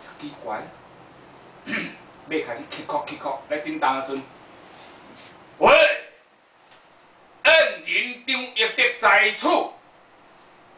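A middle-aged man speaks with animation, in bursts with pauses.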